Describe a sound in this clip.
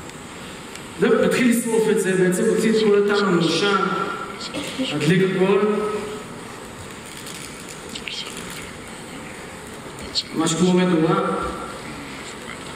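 A man speaks with animation through a headset microphone, amplified over loudspeakers in a large echoing hall.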